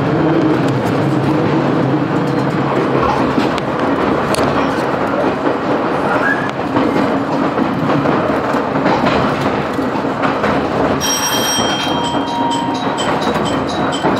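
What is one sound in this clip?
A train rumbles and rattles steadily along the tracks, heard from inside a carriage.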